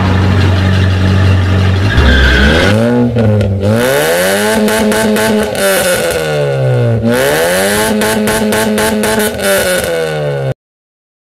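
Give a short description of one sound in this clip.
A sports car engine revs up and down loudly.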